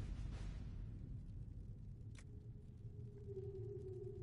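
A soft menu click sounds as a selection changes.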